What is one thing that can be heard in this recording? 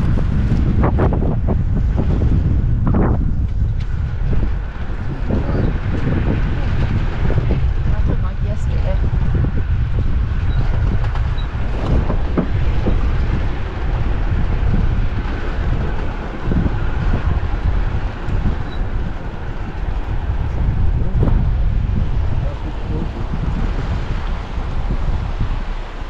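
A vehicle engine rumbles steadily as it drives over rough dirt.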